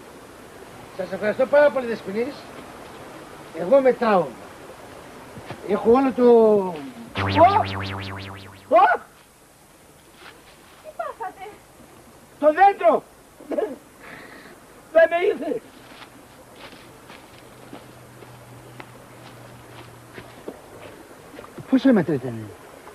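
A middle-aged man calls out loudly outdoors, in short bursts.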